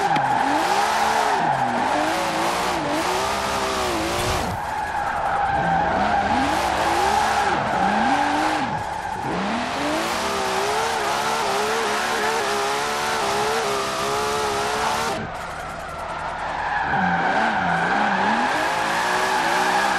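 Tyres screech as a sports car drifts through bends.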